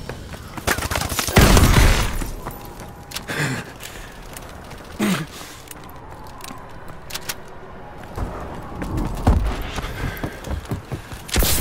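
A gun fires in rapid bursts with loud bangs.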